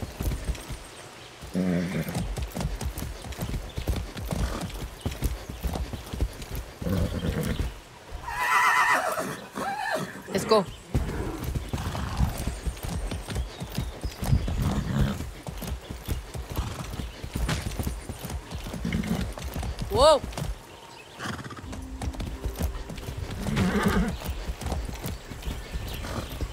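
A horse's hooves thud steadily over grass and dirt.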